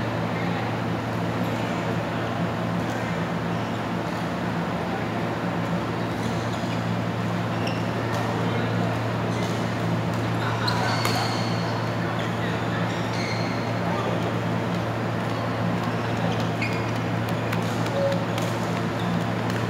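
Shuttlecocks pop off rackets in a large echoing hall.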